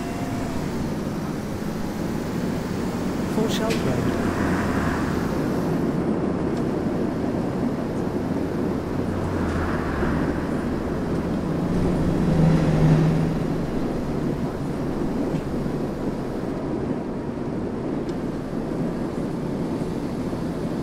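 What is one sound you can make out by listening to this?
A bus engine hums and rumbles steadily as the bus drives along.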